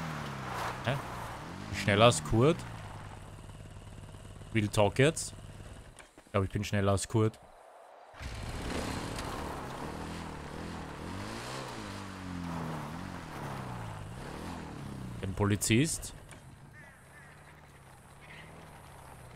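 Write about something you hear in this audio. A motorbike engine revs and hums, rising and falling.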